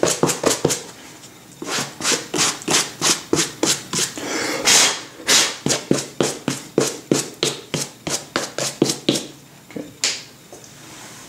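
A stiff brush scrubs quickly back and forth on suede.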